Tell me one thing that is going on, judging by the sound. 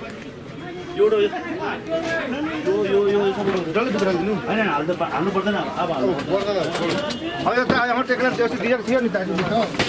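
A man talks calmly with another man nearby.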